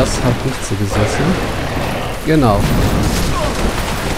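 Heavy blows strike and thud in a fast fight.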